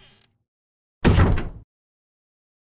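A heavy door thuds shut.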